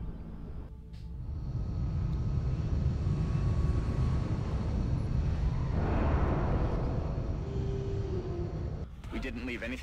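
Aircraft engines rumble and hum loudly, then fade.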